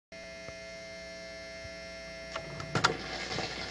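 A steady hum comes from a turntable.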